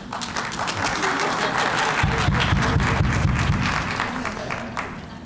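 A band plays with steady drums.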